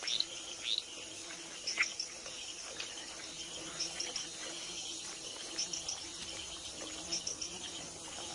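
Dry leaves and soil rustle as a wild pig roots through them.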